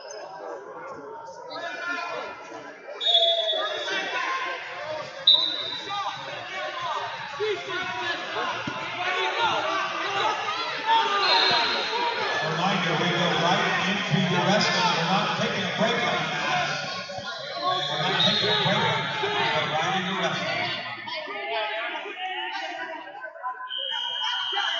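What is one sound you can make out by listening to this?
A crowd in a large echoing hall chatters and shouts.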